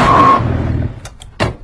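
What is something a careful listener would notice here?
A stopwatch beeps several times.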